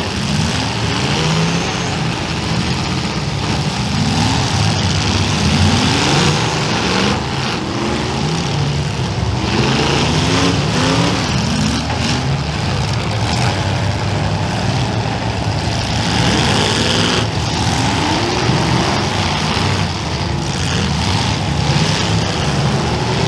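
Steam hisses loudly from a car's engine.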